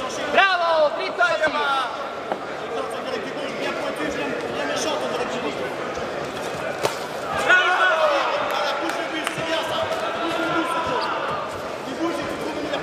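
A crowd in a large hall murmurs and cheers throughout.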